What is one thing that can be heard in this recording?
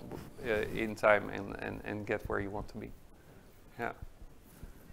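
A middle-aged man speaks thoughtfully into a microphone.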